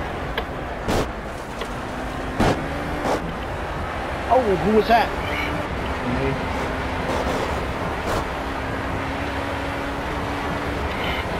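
An open-wheel racing car engine roars as it accelerates.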